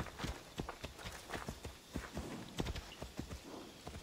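A horse's hooves clop on dirt.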